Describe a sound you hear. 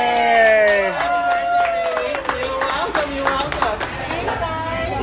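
A woman claps her hands in rhythm.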